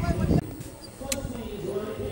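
A bat knocks a cricket ball.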